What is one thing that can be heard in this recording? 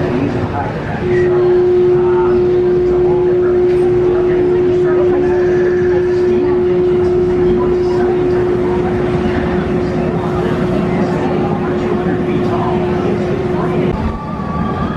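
A roller coaster train roars along its track.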